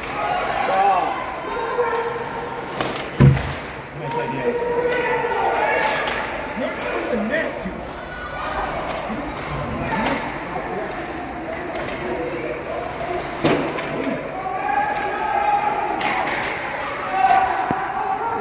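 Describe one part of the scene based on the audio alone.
Children shout and call out in a large echoing rink.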